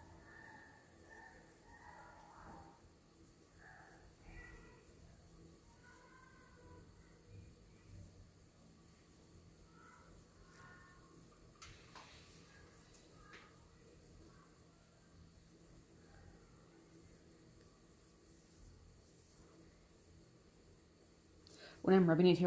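A sponge rubs softly against clay.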